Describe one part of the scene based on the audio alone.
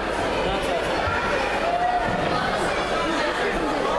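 A young judoka is thrown onto a wrestling mat with a thud.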